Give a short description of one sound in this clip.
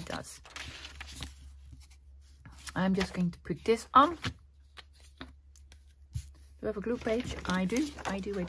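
Paper rustles softly under hands.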